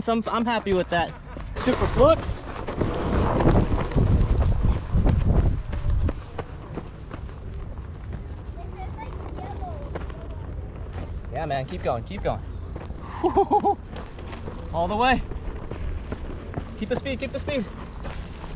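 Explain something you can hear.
A wheel rolls and crunches over dirt and gravel.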